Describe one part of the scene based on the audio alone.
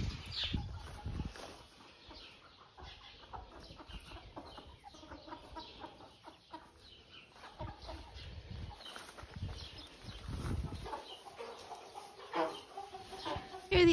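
Chickens cluck softly.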